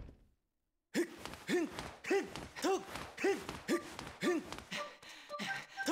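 Footsteps run quickly and steadily across a hard floor.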